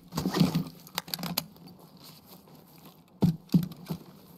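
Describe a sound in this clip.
A rifle clicks and rattles as it is handled.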